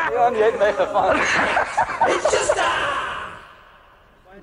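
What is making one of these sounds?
Men laugh heartily.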